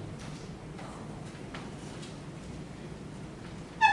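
Footsteps walk across a wooden floor in a quiet room.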